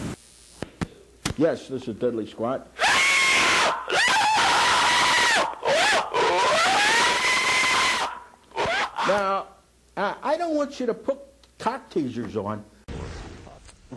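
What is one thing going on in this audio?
An elderly man speaks loudly through a microphone.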